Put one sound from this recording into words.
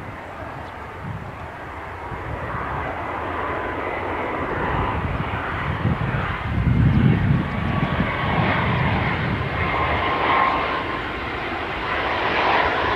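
A jet airliner's engines roar as it approaches, growing steadily louder.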